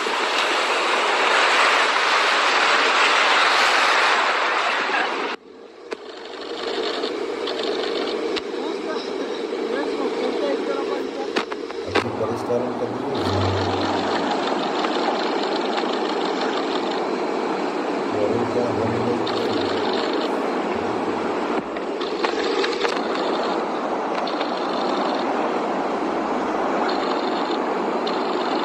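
Surf rushes and washes up the shore.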